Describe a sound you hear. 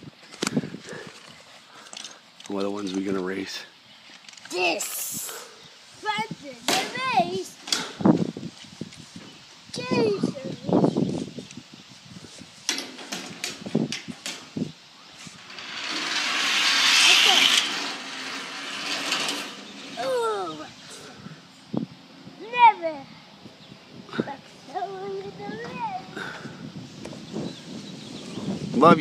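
A young boy talks and calls out excitedly close by.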